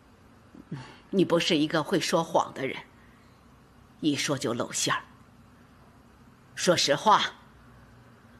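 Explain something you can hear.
An elderly woman speaks sternly and reproachfully, close by.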